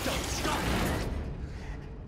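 A man shouts urgently up close.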